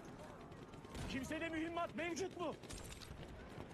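A man talks into a microphone.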